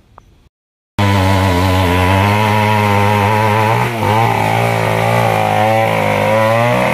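A chainsaw engine roars steadily nearby, its pitch wavering as it cuts.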